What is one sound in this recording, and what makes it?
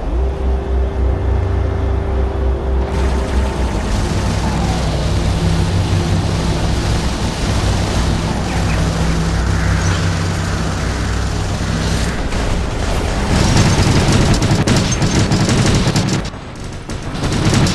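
A giant robot's engine hums low and steady.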